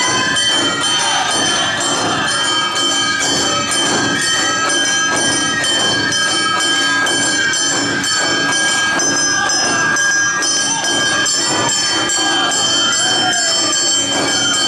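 Drums beat a fast, steady rhythm.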